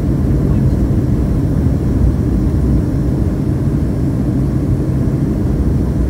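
Jet engines roar steadily with a low rumble inside an airliner cabin in flight.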